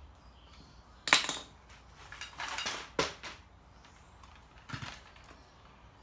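A metal trimmer shaft knocks and clatters on concrete.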